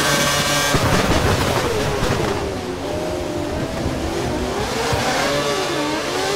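A racing car engine whines loudly, its pitch dropping as the car brakes and rising again as it speeds up.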